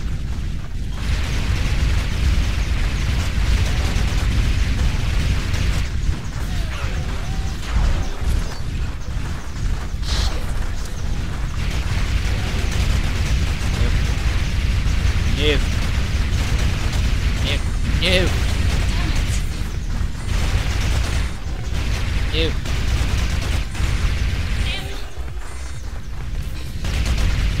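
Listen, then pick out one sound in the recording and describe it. Rapid gunfire blasts again and again.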